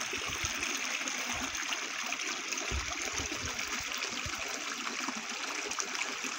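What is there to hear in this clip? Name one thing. A shallow stream trickles and babbles nearby.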